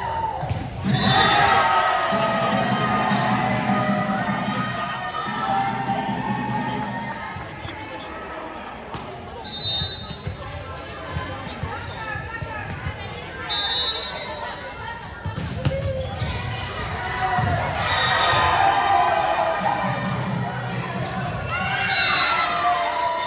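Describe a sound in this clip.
A referee blows short whistle blasts.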